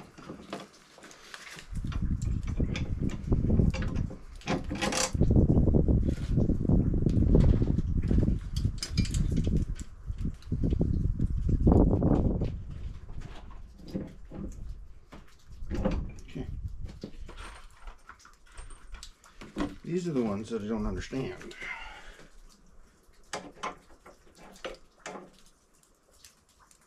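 Plastic parts clatter and knock as a man handles them.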